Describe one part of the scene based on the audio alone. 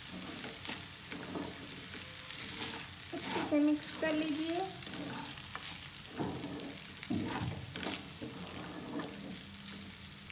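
A wooden spatula scrapes and stirs noodles in a pan.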